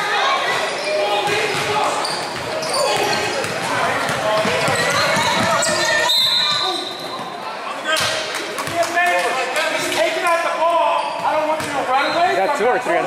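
A crowd of spectators talks and calls out in a large echoing gym.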